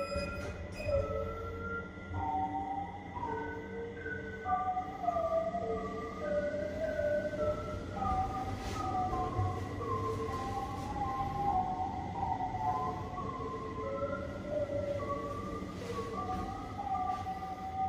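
A lift hums steadily as it travels.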